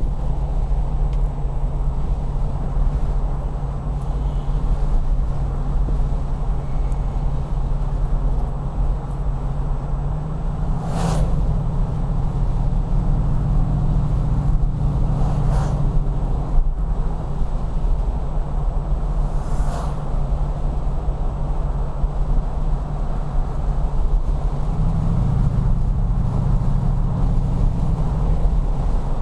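Tyres roll on smooth asphalt with a low rumble.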